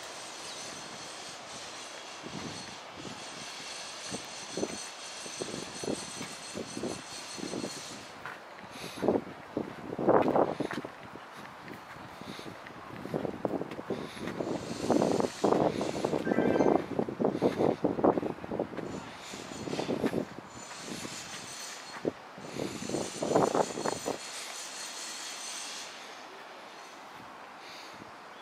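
Wind blows through tall flowers outdoors.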